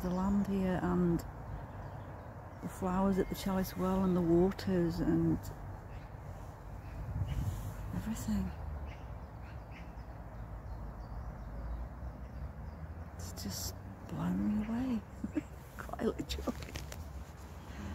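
A middle-aged woman speaks calmly and close to the microphone.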